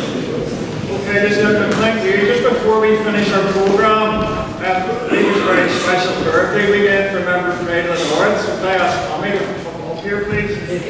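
A man speaks with animation through a microphone in a large echoing room.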